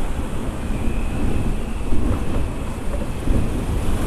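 A truck engine rumbles as it passes close by.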